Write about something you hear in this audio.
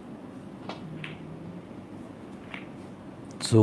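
Snooker balls knock together.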